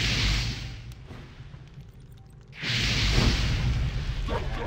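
A fireball whooshes through the air.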